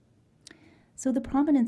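A woman begins speaking into a microphone.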